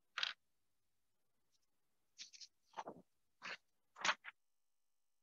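A sheet of paper rustles as it is turned over.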